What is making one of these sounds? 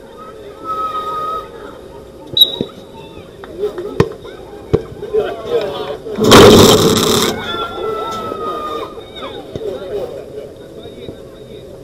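Men shout to each other on an outdoor pitch.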